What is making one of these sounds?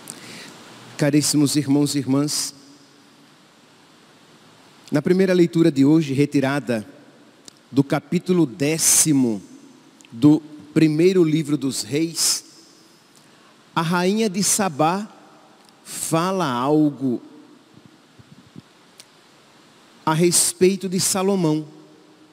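A man speaks calmly into a microphone, in phrases with pauses, heard through a loudspeaker.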